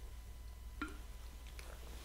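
A woman sips a drink from a bottle.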